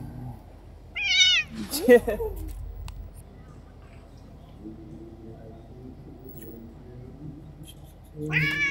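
A cat meows loudly.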